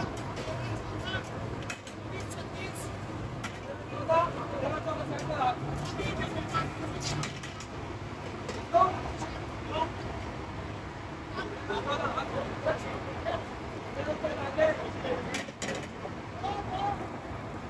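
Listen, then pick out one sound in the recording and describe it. Meat sizzles over hot coals.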